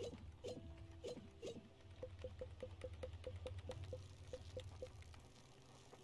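Soft clicks tick quickly in a steady run.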